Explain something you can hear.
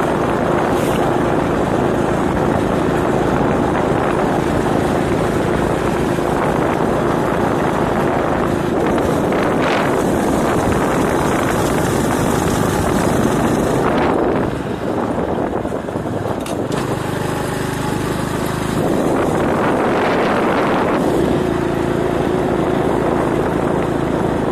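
A motorbike engine hums steadily while riding along a road.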